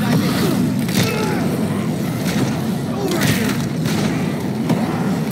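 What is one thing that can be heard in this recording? Heavy blows thud against bodies.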